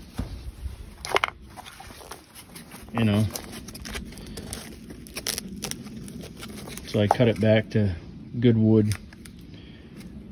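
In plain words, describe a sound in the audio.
Rotten wood crumbles and cracks between fingers.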